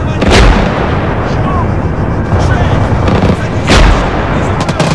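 Loud explosions boom nearby.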